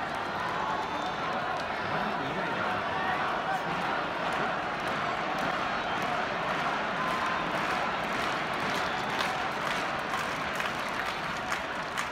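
Spectators clap and bang noisemakers in a rhythmic cheer.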